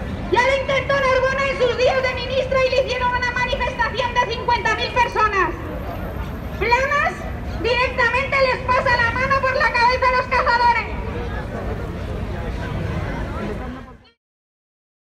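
A crowd chants loudly outdoors.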